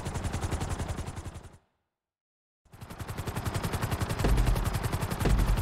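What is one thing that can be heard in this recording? Helicopter rotor blades chop rapidly and steadily.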